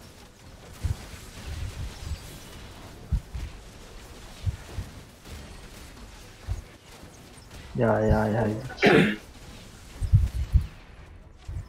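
Short thuds and clashes of a fight in a video game come again and again.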